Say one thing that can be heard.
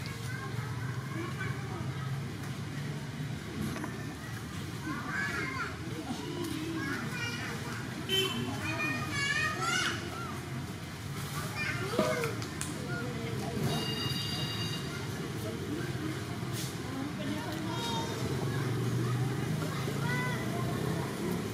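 A monkey munches on crisp leaves close by.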